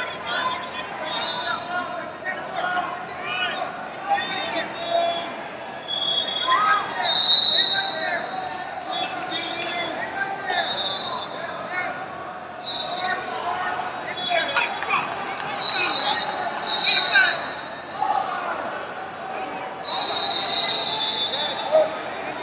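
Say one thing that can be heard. Men shout encouragement loudly.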